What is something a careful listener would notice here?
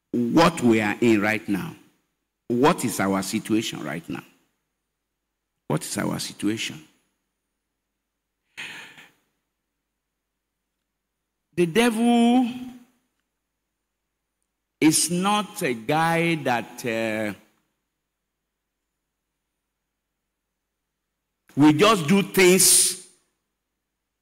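An elderly man preaches with emphasis into a microphone, in short bursts with long pauses.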